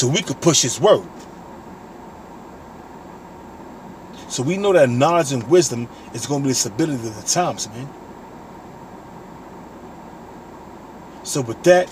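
A man speaks calmly and close up, in bursts with pauses.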